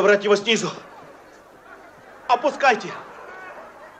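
A young man speaks loudly nearby.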